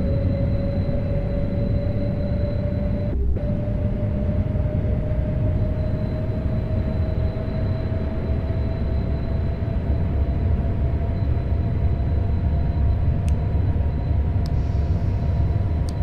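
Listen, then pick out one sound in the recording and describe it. Train wheels rumble low and steadily on the rails.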